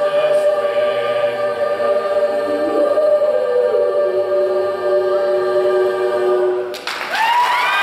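A choir sings a held chord in a large echoing hall.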